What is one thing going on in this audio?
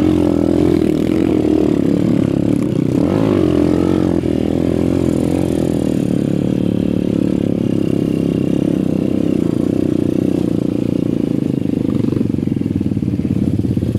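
Other dirt bike engines rev nearby.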